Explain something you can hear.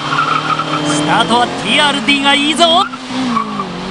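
Tyres squeal sharply on the road.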